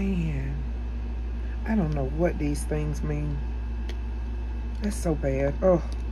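Small hard plastic pieces click softly as they are handled.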